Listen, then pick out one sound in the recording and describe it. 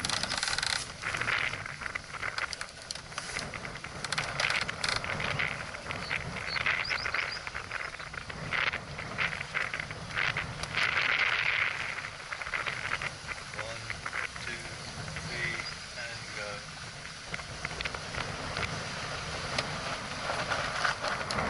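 Water splashes and laps against a moving boat's hull.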